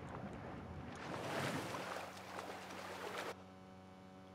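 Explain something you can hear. A small boat's motor rumbles past.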